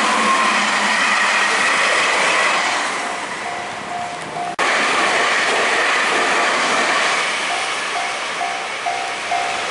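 A train rumbles and clatters past on the tracks.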